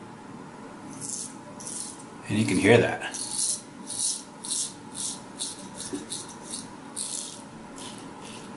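A razor scrapes through stubble in short, quick strokes.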